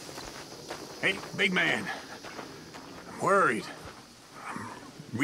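A man speaks in a worried voice nearby.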